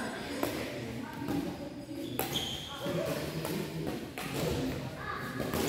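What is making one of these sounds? A racket pops sharply as it strikes a shuttlecock in a large echoing hall.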